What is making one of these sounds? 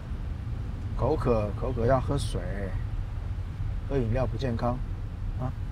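A man speaks calmly inside a car, close by.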